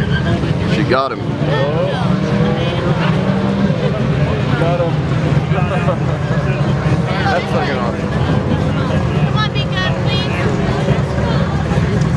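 A car engine roars as a car speeds away down the track.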